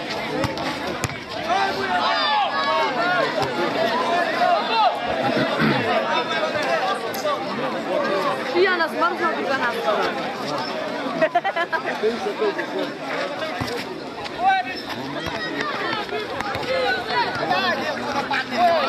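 A large crowd of spectators shouts and cheers outdoors.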